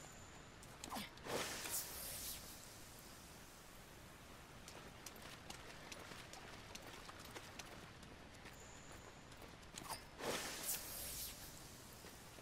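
A bright sparkling chime rings out.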